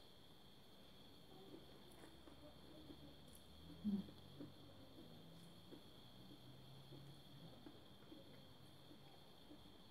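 A woman chews and slurps noodles.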